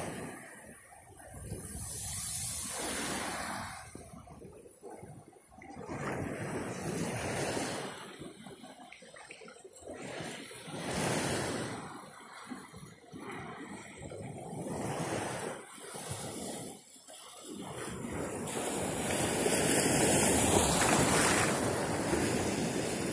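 Small waves wash softly onto the shore.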